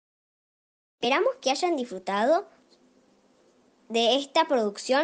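Another young girl speaks with animation, close by.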